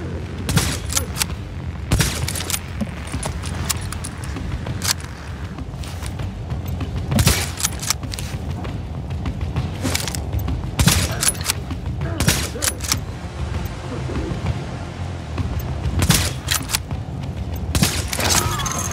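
Sharp rifle shots crack several times.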